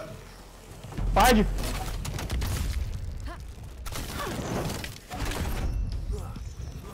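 Heavy weapons clash and thud in a fight.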